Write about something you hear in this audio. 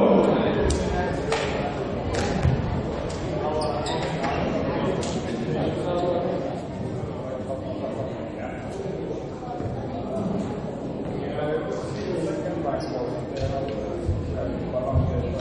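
Young men chatter and call out in a large echoing sports hall.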